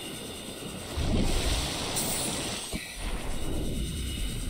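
Water rushes and splashes as a submarine breaks the surface.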